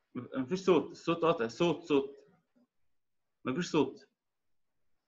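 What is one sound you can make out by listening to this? A man speaks close to a phone microphone, heard as if over an online call.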